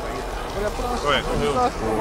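An energy blast crackles loudly.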